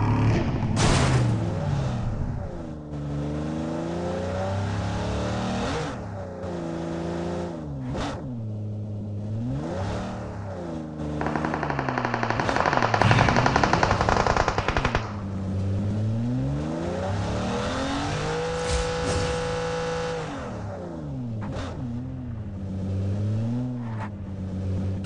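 A car engine revs up and down over and over.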